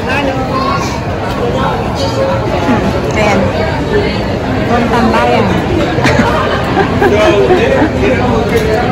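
A crowd chatters all around in a busy, echoing hall.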